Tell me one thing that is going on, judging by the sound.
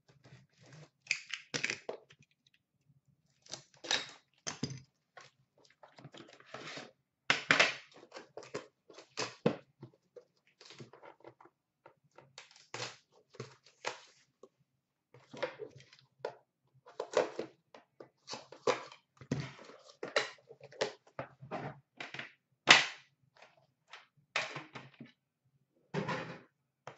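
Cardboard boxes rustle and scrape as hands handle them.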